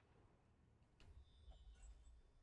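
A burning torch flares up with a whoosh.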